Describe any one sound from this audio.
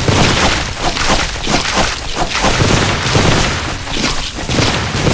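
Fiery blasts whoosh and crackle in a video game.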